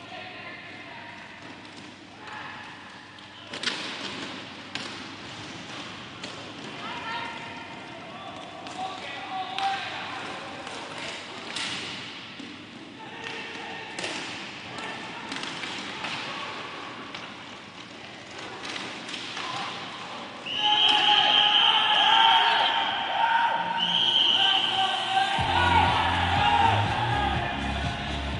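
Skate wheels roll and scrape on a hard floor.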